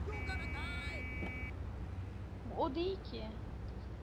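A van door opens and shuts.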